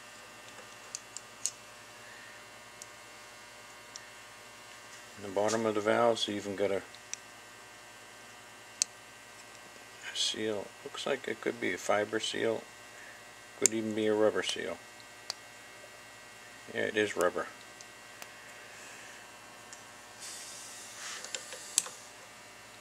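Small metal parts click and tap as they are handled.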